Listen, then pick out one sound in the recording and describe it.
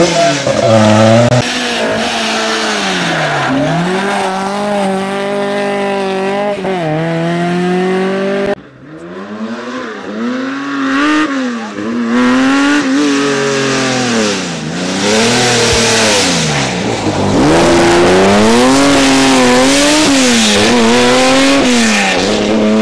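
A rally car engine revs hard, its pitch rising and falling.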